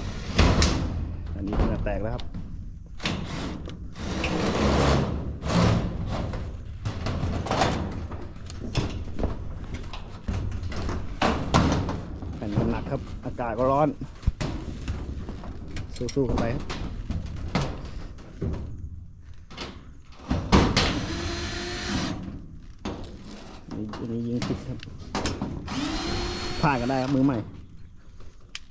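A hand tool clanks and scrapes against a metal roof.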